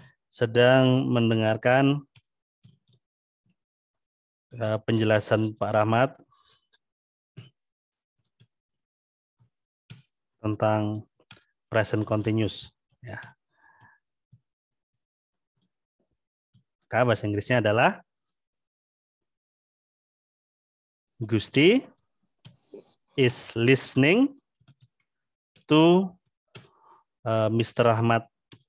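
A man speaks slowly and calmly through an online call, with pauses between phrases.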